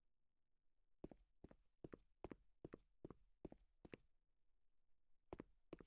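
Footsteps thud at an even pace on a hard floor.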